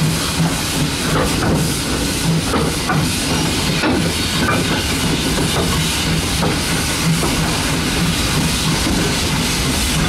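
A steam locomotive chuffs steadily as it runs along the track.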